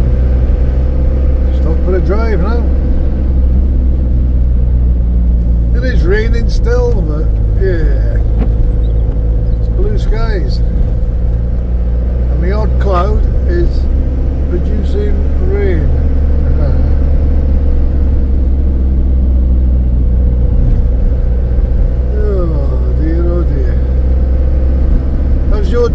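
A truck engine hums steadily and low.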